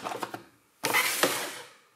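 Metal bike pedals clink as they are handled.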